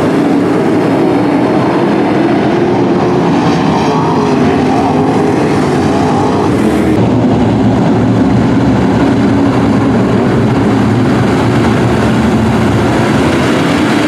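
Race car engines rev up and down in rising and falling tones.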